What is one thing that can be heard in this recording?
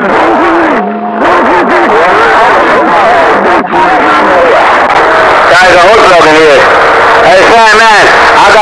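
A shortwave radio hisses with loud static.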